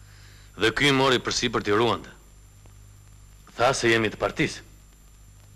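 A man speaks in short, tense phrases.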